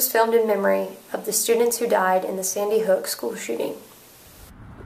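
A young woman speaks calmly and close to the microphone.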